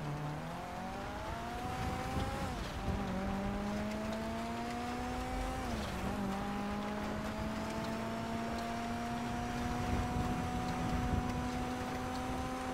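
Tyres hiss on a snowy road.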